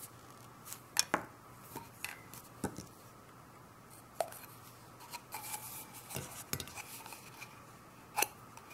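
Plastic tubes click and tap against each other.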